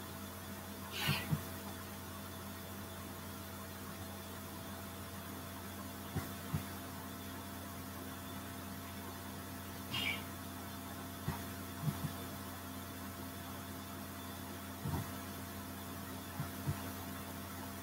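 Hands softly tap and rub together.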